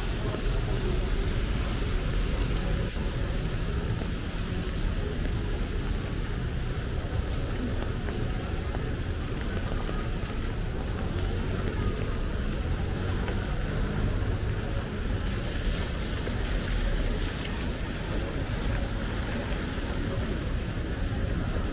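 Steady rain patters on wet pavement outdoors.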